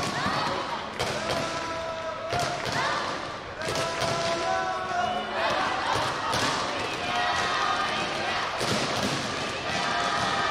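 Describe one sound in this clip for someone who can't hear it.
Bare feet squeak and thud on a mat in a large echoing hall.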